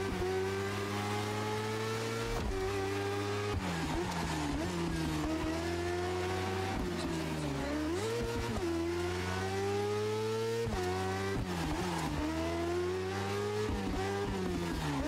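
Tyres screech on asphalt in tight corners.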